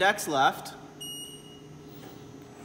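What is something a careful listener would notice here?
A control panel gives a short electronic beep.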